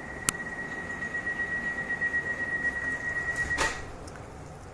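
A door warning signal beeps steadily.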